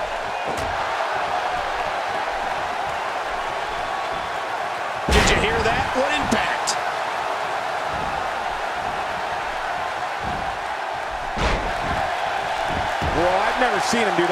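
A crowd roars steadily in a large arena.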